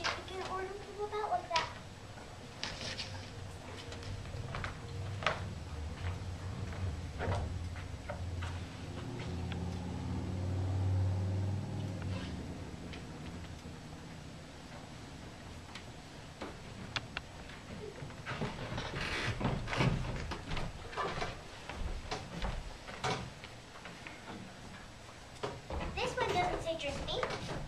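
A young girl speaks on a stage.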